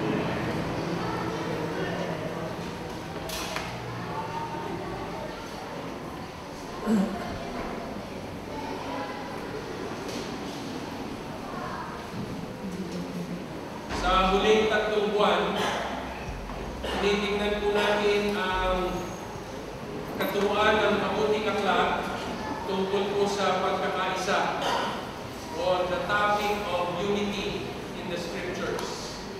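An elderly man speaks calmly through a microphone and loudspeakers in a large echoing hall.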